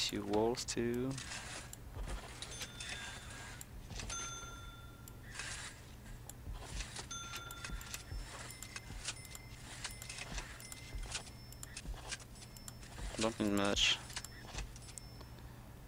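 Short electronic clicks and chimes sound as items are placed in a game.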